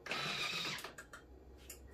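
A finger taps a button on a kitchen machine.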